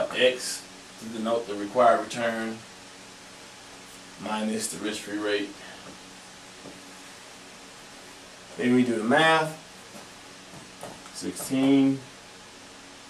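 A man speaks calmly and clearly nearby, explaining in short phrases.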